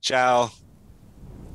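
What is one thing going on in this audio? A young man speaks briefly over an online call.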